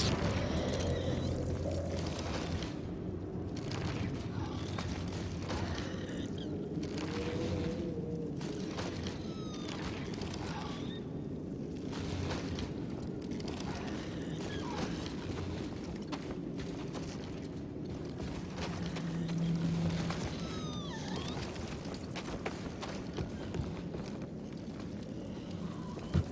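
Footsteps crunch and scrape over loose rock.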